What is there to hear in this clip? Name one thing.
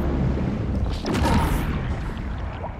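A heavy body lands hard with a loud thump.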